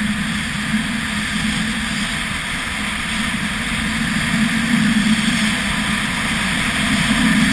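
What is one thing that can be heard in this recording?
Wind rushes and buffets past the microphone.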